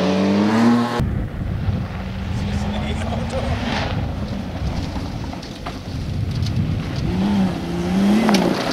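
A second rally car engine revs and roars on a gravel track.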